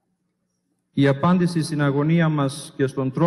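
A man chants in a melodic voice through a microphone in a large echoing hall.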